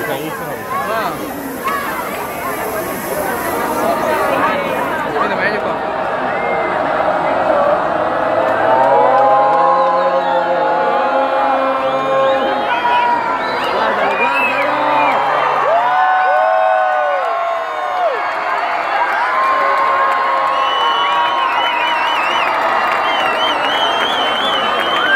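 Music plays loudly through big loudspeakers.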